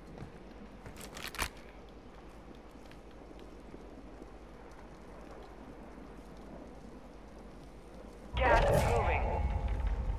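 Footsteps thud on a metal platform.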